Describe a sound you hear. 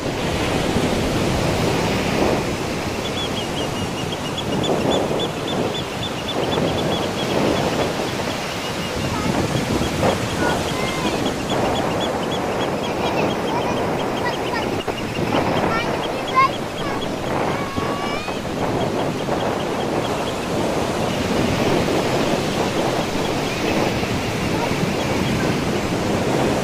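Surf washes and breaks along the shore.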